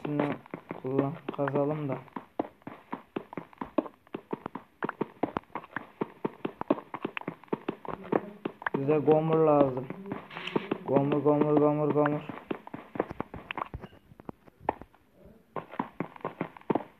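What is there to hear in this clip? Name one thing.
A pickaxe taps rapidly at stone.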